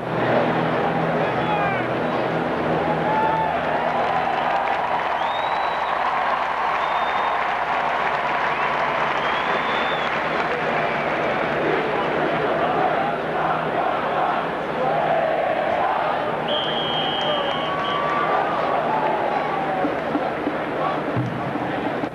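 A marching band plays in the distance.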